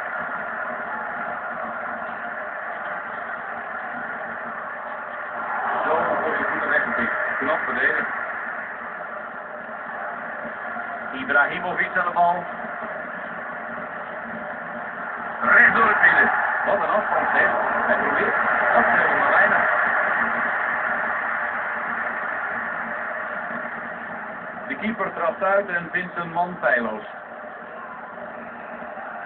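A stadium crowd roars steadily through a television loudspeaker, swelling now and then.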